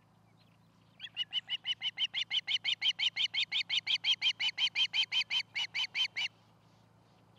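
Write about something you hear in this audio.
An eagle nearby gives a rapid series of high, piping chirps.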